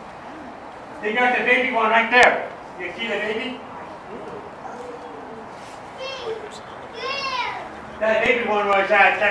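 A monkey calls out with shrill, high squeals.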